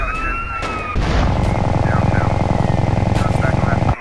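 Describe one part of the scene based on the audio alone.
A heavy machine gun fires a rapid, rattling burst.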